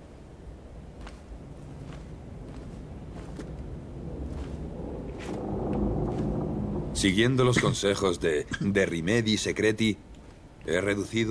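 Slow footsteps scuff on a gritty stone floor.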